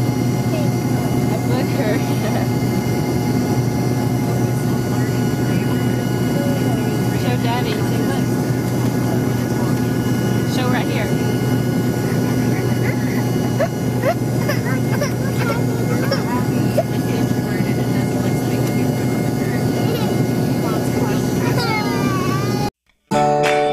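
A steady low drone of an airplane cabin hums throughout.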